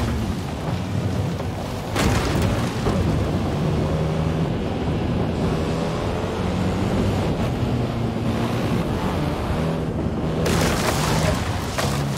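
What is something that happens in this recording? Tyres skid and rumble over grass and dirt.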